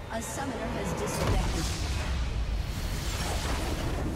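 A crystal bursts with a loud shimmering blast.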